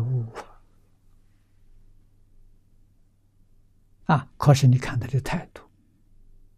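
An elderly man speaks calmly and warmly into a microphone, pausing between phrases.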